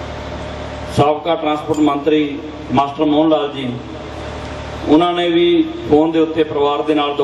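A man speaks through a microphone over loudspeakers, in a measured, chanting manner.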